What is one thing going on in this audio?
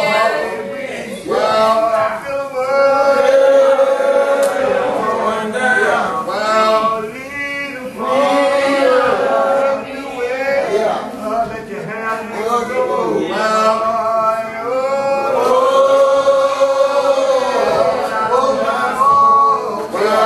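A man prays aloud in a chanting, sing-song voice.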